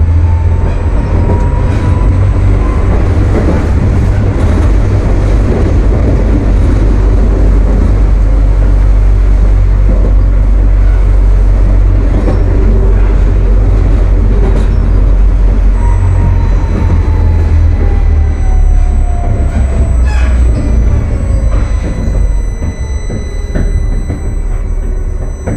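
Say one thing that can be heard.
A tram's electric motor whines, rising and then falling in pitch.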